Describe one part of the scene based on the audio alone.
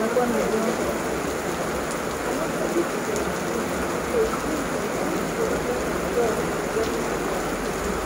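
Wind gusts through trees.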